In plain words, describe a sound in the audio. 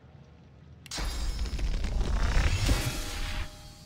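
A crackling magical burst whooshes and rumbles.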